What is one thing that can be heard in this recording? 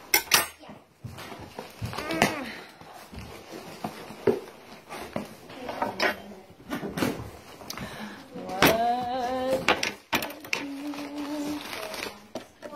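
Cardboard rustles and tears as a box is opened by hand.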